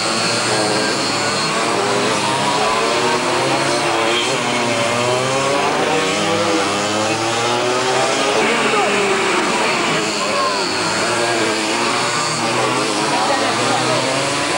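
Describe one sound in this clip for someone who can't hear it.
Small kart engines buzz loudly and rise and fall in pitch as the karts race past close by.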